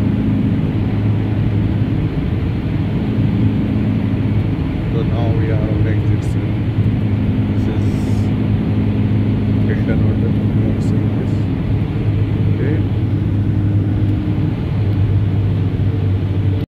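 A car engine hums steadily from inside a moving vehicle.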